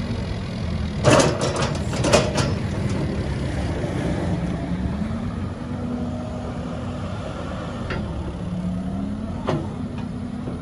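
Metal clanks and knocks from the excavator's bucket.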